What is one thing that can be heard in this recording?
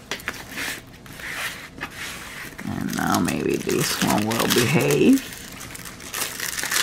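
Plastic packaging crinkles and rustles under hands.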